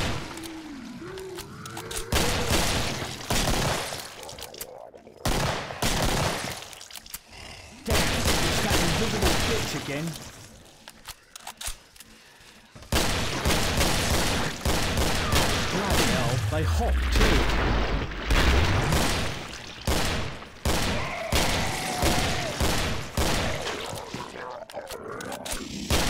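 Monsters growl and shriek.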